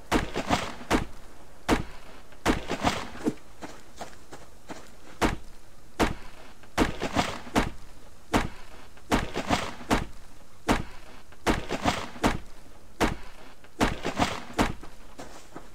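An axe chops into a tree trunk with sharp, repeated thuds.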